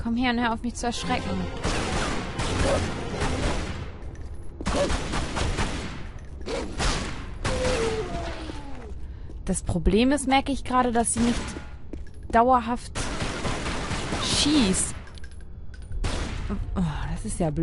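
Pistol shots crack in quick bursts, echoing off stone walls.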